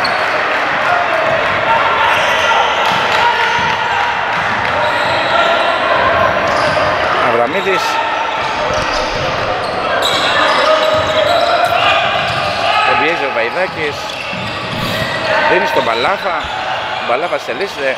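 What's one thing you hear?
Spectators murmur and call out in a large echoing hall.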